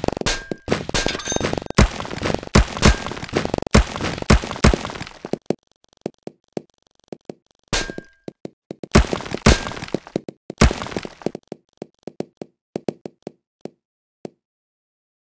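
Many small balls clatter and bounce in quick bursts.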